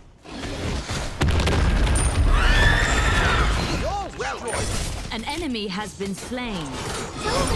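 Fiery magical blasts boom and roar with a deep rumble.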